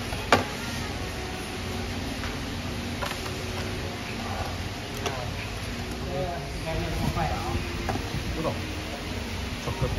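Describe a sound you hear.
Metal tongs click against a plate.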